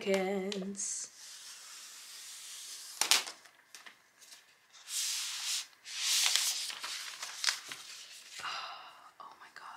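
A thin plastic sheet rustles and crinkles as it is peeled away.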